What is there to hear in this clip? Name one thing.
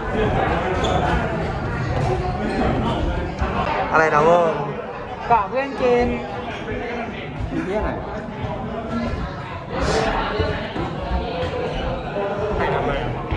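A crowd of young people chatters loudly in an echoing stairwell.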